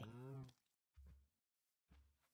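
A soft crunch sounds as something breaks.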